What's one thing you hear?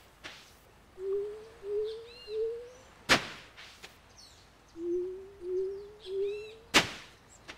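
Short rising chirps sound as a hoe tills soil.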